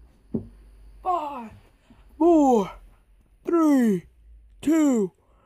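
A young man close by lets out loud, drawn-out cries that fall in pitch.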